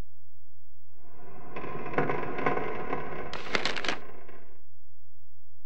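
Pages of a book turn with a papery rustle.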